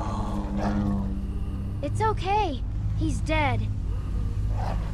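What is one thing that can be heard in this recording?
A young girl speaks calmly and reassuringly.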